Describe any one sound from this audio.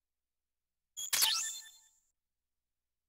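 A short bright electronic chime sounds.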